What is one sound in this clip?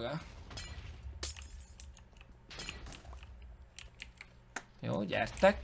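A pickaxe chips at stone blocks with quick clicks.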